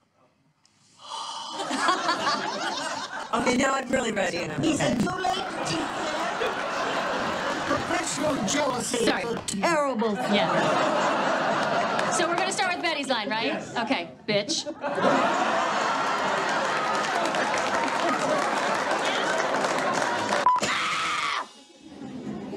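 Women laugh heartily close by.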